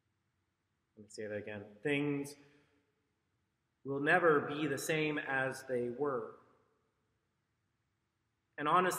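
A man speaks calmly into a microphone, in pauses.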